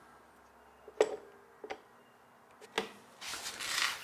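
A hand clamp clicks as it is squeezed tight.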